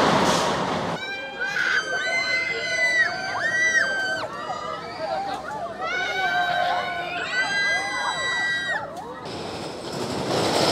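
Children and young women shriek as a swinging ride lurches back and forth.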